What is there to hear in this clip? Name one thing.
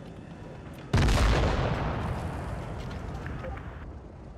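An explosion bursts with a heavy roar.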